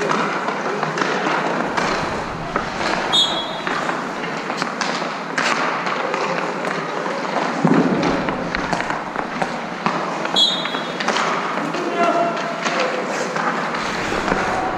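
A hockey stick taps and clacks a puck.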